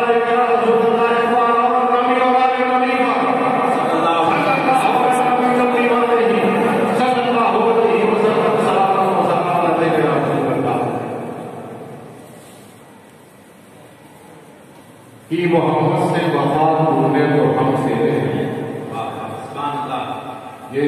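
An elderly man chants in a long, melodic voice through a loudspeaker in a large echoing hall.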